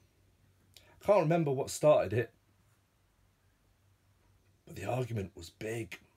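A man speaks calmly close by, pausing between phrases.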